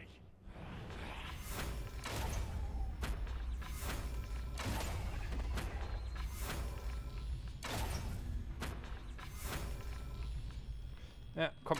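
A bow looses arrows one after another.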